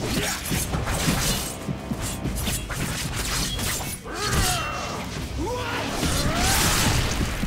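Heavy blows thud and clang against flesh and armour.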